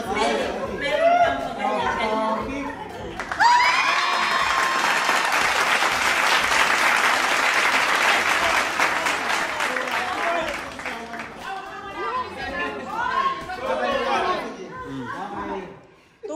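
A woman talks excitedly close by.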